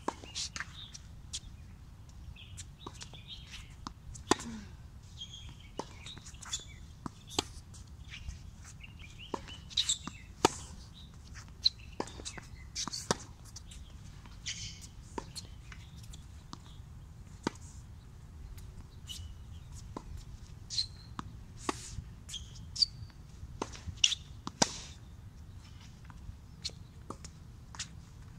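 A tennis racket strikes a ball with sharp pops, again and again, outdoors.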